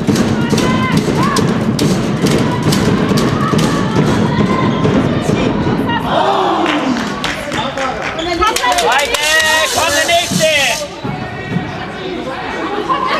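A handball bounces on a hall floor.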